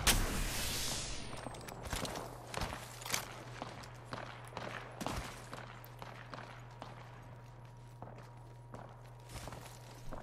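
Footsteps crunch quickly on snow.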